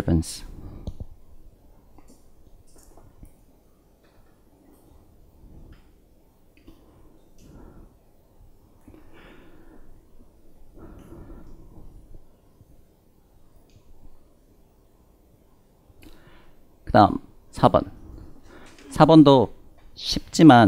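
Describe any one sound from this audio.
A man lectures through a headset microphone, speaking quietly at first and then loudly with animation.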